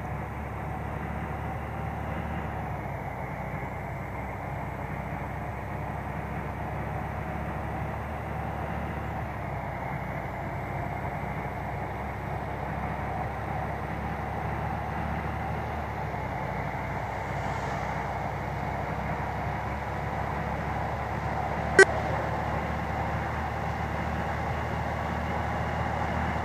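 A bus engine drones steadily as it drives along a road.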